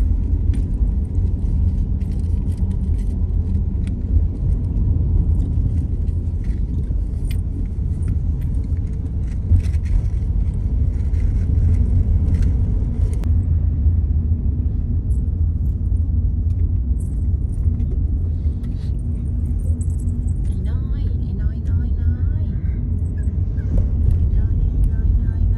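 Tyres roll steadily over a paved road.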